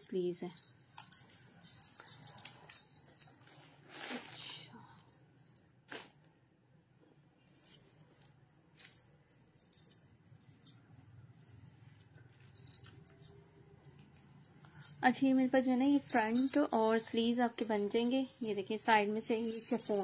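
Fabric rustles as clothes are dropped and handled.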